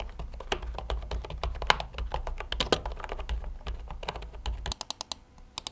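Keyboard keys clatter under fast typing.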